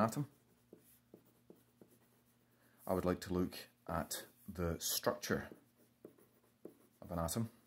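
A pen scratches across paper.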